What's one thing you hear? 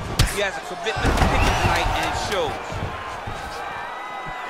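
A crowd cheers and roars loudly.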